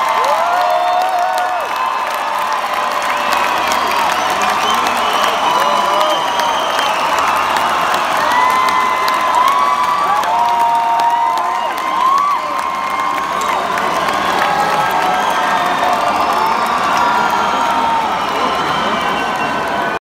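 A large crowd cheers and screams loudly in a big echoing hall.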